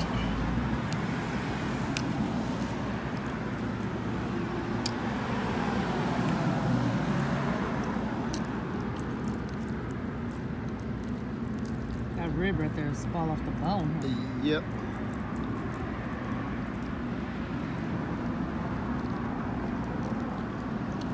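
A plastic fork scrapes and taps against a foam food container.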